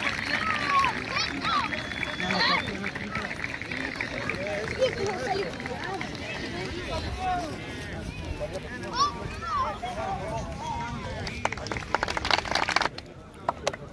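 A crowd of voices cheers and shouts excitedly outdoors.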